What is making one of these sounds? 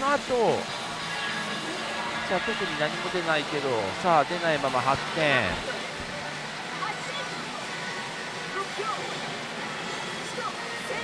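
A pachinko machine plays loud electronic music and sweeping sound effects.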